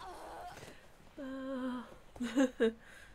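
A young woman exclaims and laughs close to a microphone.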